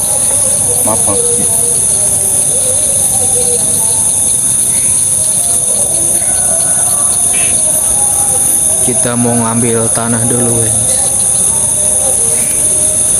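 A middle-aged man talks quietly nearby.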